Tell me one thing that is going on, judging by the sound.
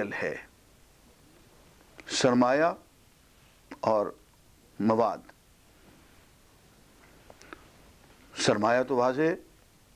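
An elderly man speaks calmly into a nearby microphone, in short phrases with pauses.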